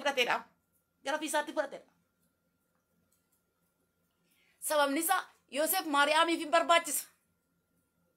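A woman speaks calmly into a microphone over an online call, with pauses.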